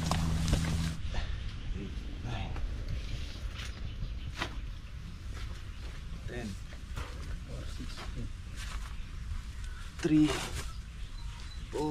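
Bundles of long beans rustle and thump as they are handled.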